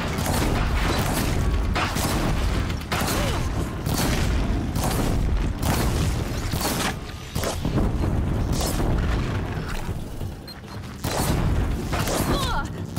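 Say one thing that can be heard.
Blasts and explosions boom in a game fight.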